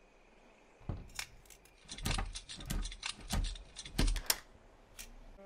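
A lock is picked with small metallic clicks.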